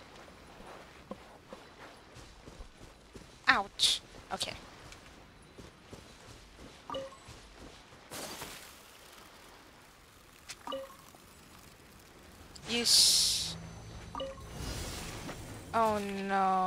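Light footsteps patter quickly on grass and sand.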